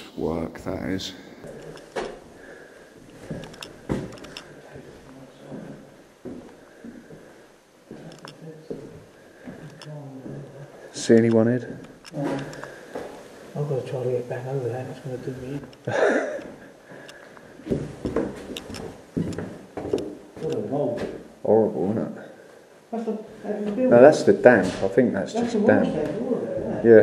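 A man talks calmly and close by, in an echoing empty room.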